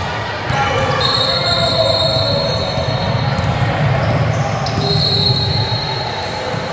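Sneakers squeak sharply on the floor.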